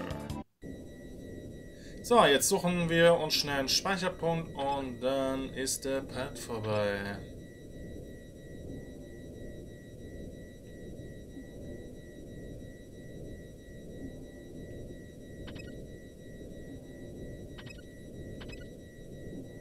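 Soft, steady video game music plays throughout.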